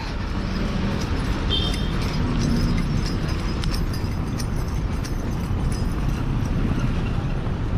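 A car engine rumbles low as the car slowly pulls away.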